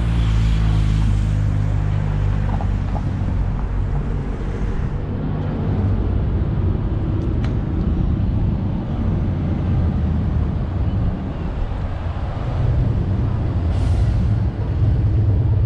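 Wind rumbles and buffets steadily outdoors.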